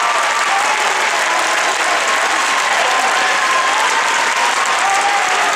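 A large audience applauds in a large hall.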